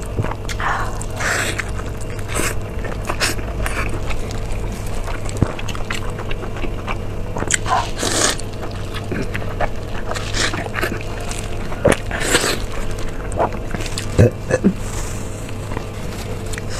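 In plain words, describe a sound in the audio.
A young woman bites into crisp lettuce and chews with loud crunching close to a microphone.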